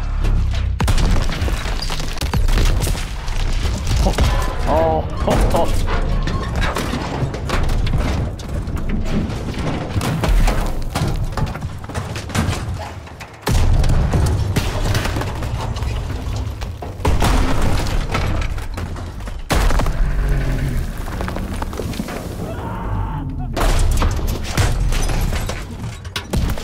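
Debris crashes and clatters down.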